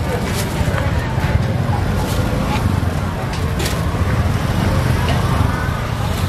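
A plastic bag rustles as food is scooped into it.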